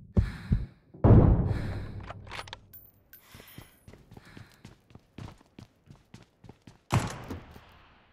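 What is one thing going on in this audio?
A rifle shot cracks loudly.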